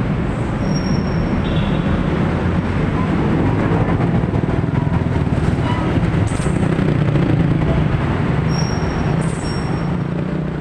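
A motorbike engine passes close by.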